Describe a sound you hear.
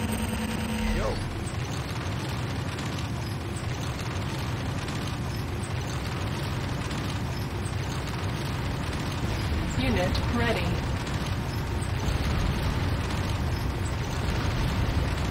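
A heavy vehicle engine rumbles low and steady.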